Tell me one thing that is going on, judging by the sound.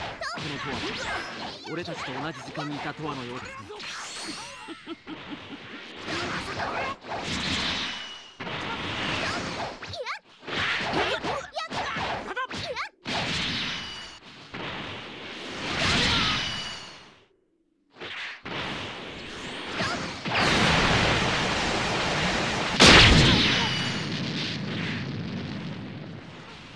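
Energy blasts whoosh and crackle in rapid bursts.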